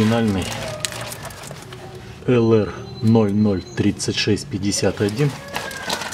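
A cardboard box rustles as it is handled.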